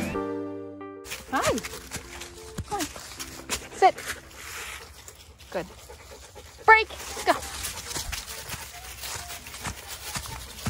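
Dogs run and rustle through dry leaves.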